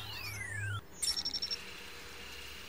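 An electronic device beeps rapidly in a short burst.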